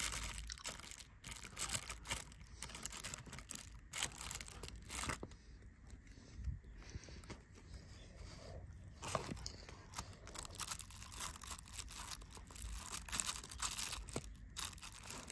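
Wooden chopsticks tap and scrape against a food container.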